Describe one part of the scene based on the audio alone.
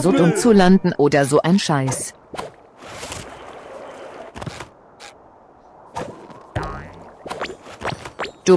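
Short cartoonish sound effects pop as a character jumps and lands.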